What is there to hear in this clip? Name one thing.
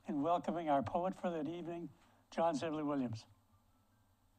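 An elderly man speaks calmly and close up.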